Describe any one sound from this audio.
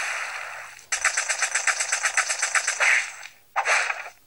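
Rapid punches thud in quick succession.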